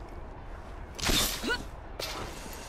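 A rope launcher fires with a sharp whoosh.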